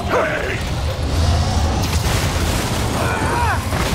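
Wooden crates smash and splinter.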